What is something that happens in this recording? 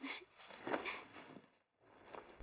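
A young woman laughs softly close by.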